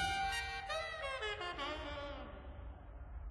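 A shimmering game effect sweeps downward and fades.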